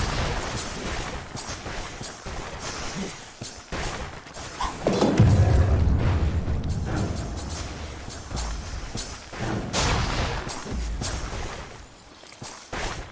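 Spell effects crackle and clash during a game battle.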